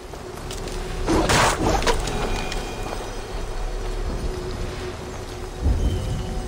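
Leaves rustle as dense bushes are pushed through.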